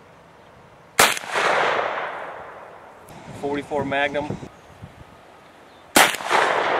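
A rifle fires loud shots that echo outdoors.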